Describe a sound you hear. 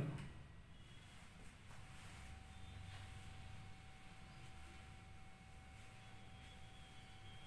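A pen taps and scrapes softly on a board.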